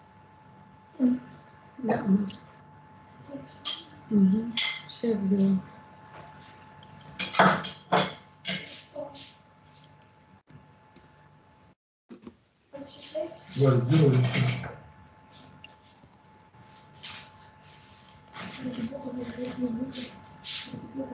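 An elderly woman speaks calmly over an online call.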